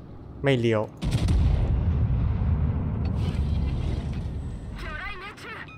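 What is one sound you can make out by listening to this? Heavy ship guns fire with deep booms that rumble away.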